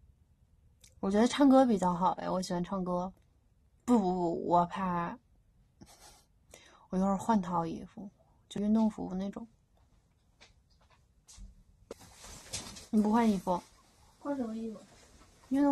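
A young woman talks softly and playfully close to a microphone.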